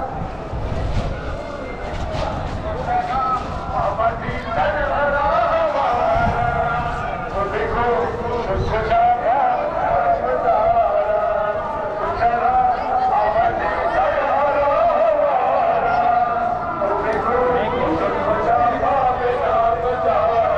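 A crowd of men chants loudly together outdoors.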